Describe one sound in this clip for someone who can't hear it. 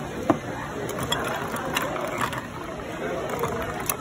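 Metal tongs clink against ice cubes in a glass.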